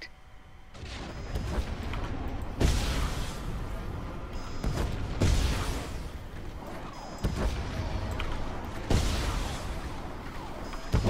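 Game blasts and impacts thud and crackle.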